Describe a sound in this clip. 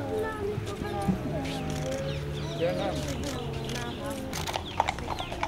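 An elderly man speaks softly to children.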